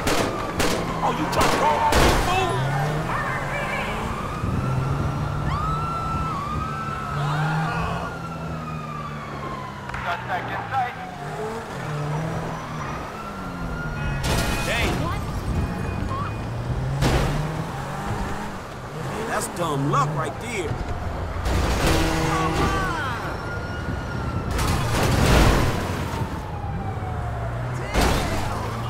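A sports car engine roars and revs up and down through gear changes.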